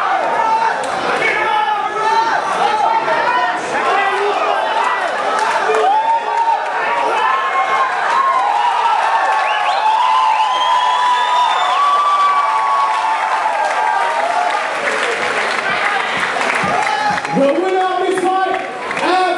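A large crowd shouts and cheers loudly.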